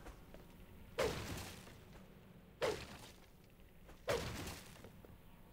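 A sword swishes through the air in sharp strikes.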